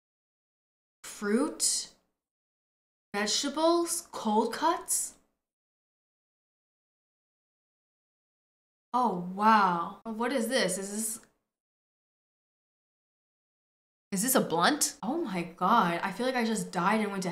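A young woman talks with animation into a microphone, in short bursts with pauses.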